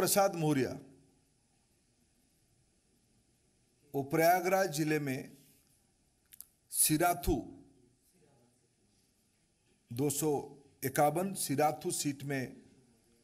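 A middle-aged man speaks into a microphone with pauses between phrases.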